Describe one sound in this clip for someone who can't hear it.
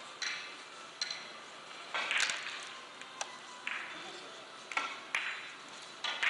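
Billiard balls click sharply against each other in an echoing hall.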